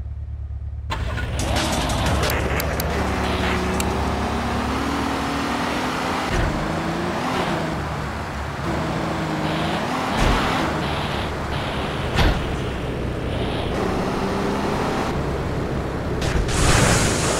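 A pickup truck engine revs and pulls away.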